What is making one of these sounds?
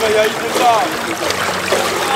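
Water splashes as a young man swims.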